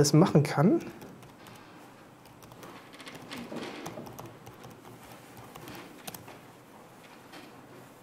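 Keyboard keys click as a man types.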